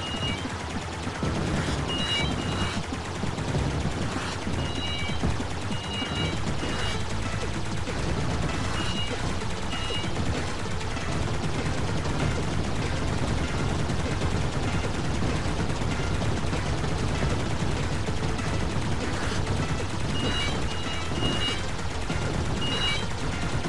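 Electronic explosions rumble and boom.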